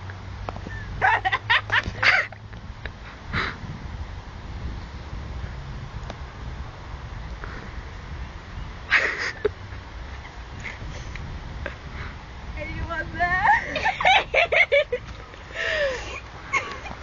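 A teenager laughs loudly close by.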